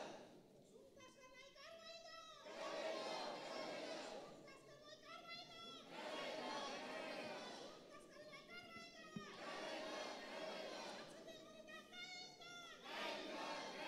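A crowd of men shouts and clamours noisily between the chants.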